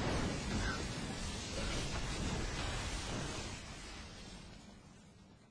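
Electric blasts crackle and roar loudly, then die away.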